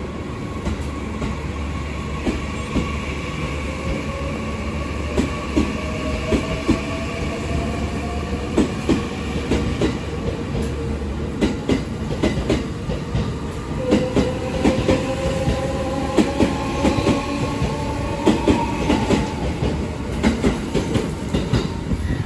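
A train rolls past with a steady rumble.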